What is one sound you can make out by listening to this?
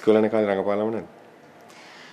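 A young man speaks calmly up close.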